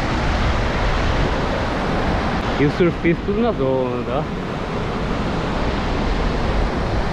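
Waves wash up on a beach.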